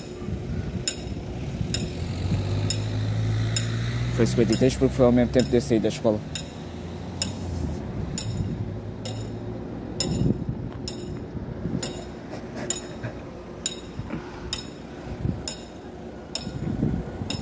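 A level crossing bell rings in steady, evenly spaced strokes outdoors.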